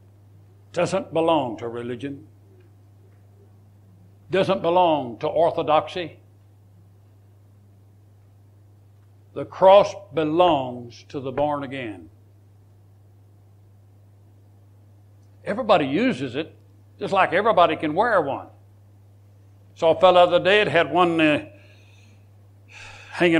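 An elderly man speaks calmly and slowly, with pauses between phrases.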